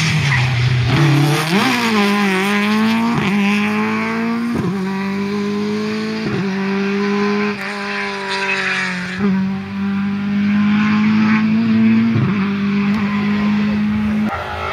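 A rally car engine roars and revs hard, its pitch dropping at each gear change.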